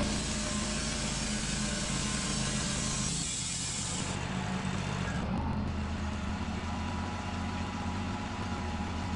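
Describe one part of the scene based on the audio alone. A sawmill engine drones steadily.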